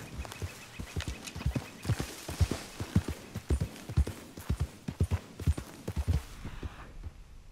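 Horse hooves thud rapidly on soft ground at a gallop.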